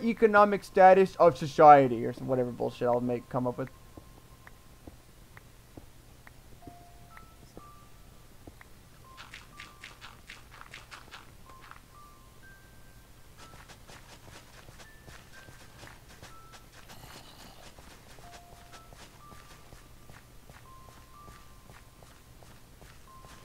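Footsteps thud softly on dirt.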